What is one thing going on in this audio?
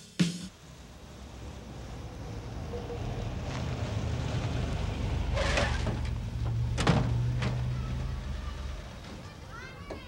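A car engine rumbles as the car drives up and stops.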